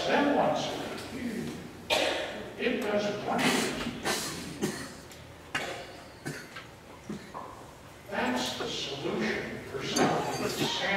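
An elderly man speaks with animation in a large echoing room.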